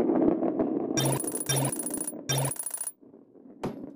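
Coins chime brightly as they are picked up.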